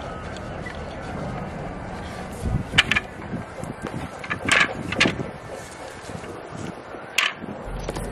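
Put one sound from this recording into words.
A wooden folding table knocks and clatters.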